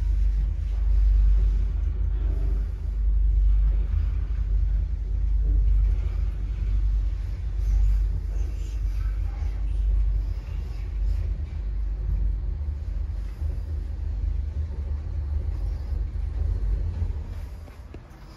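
An elevator hums and rumbles steadily as it rises.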